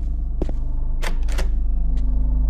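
A door handle rattles against a lock.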